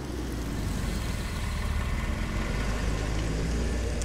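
A car engine rumbles nearby.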